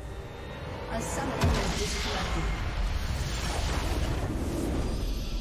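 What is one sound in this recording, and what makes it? A base structure explodes with a deep booming crash.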